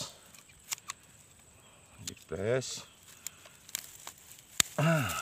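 Pruning shears snip through roots with sharp clicks.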